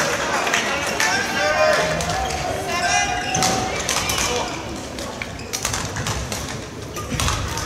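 A shuttlecock is struck sharply with rackets back and forth in an echoing hall.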